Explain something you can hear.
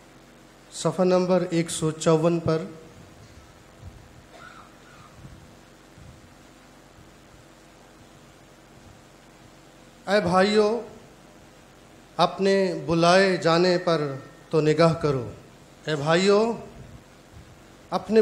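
A man reads aloud calmly into a microphone, with pauses.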